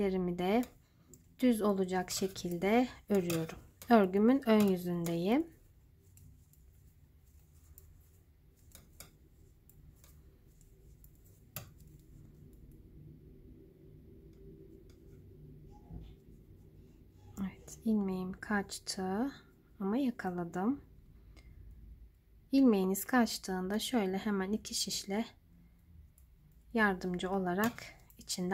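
Metal knitting needles click and tick softly against each other.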